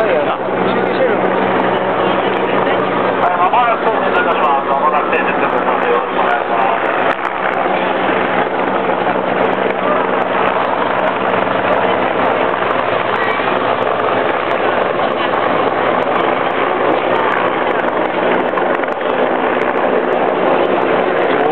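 A large crowd of men and women chatters and calls out nearby, outdoors.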